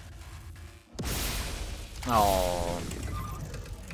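A loud metallic crash rings out with a whoosh.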